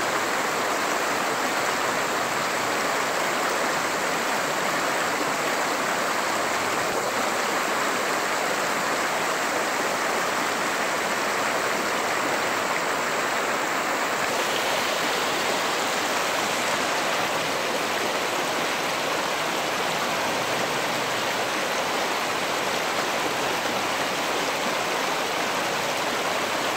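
A shallow creek gurgles and rushes over stones.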